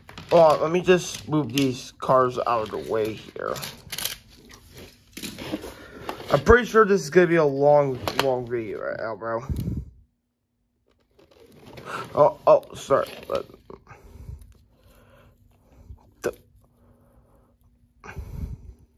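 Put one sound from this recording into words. Plastic toy pieces click and rattle as they are handled.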